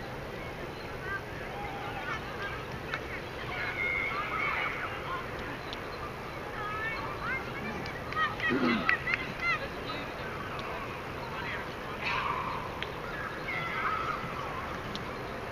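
Young women shout and call out across an open field outdoors.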